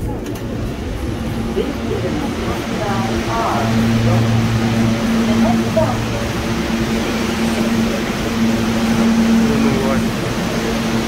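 A stopped subway train hums at an echoing platform.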